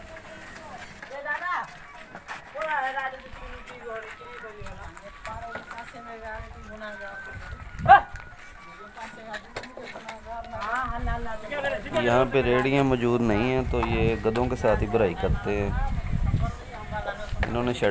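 Men talk loudly nearby outdoors.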